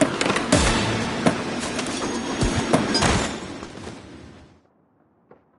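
Skateboard wheels roll loudly over pavement.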